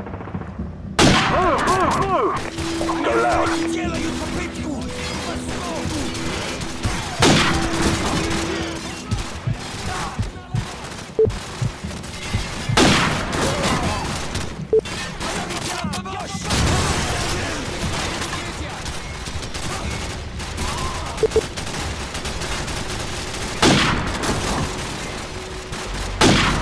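A rifle fires loud single shots that ring out and echo.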